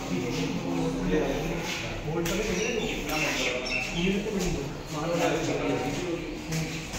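A man talks nearby in an echoing indoor space.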